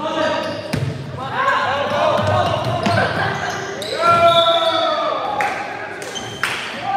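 A volleyball is struck with a thump that echoes through a large hall.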